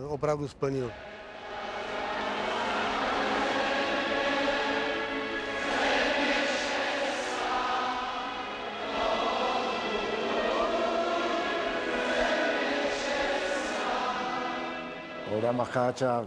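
A national anthem plays over loudspeakers in a large echoing arena.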